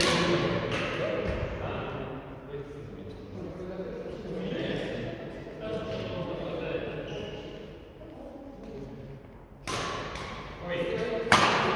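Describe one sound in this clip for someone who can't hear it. Several adults talk nearby in a large echoing hall.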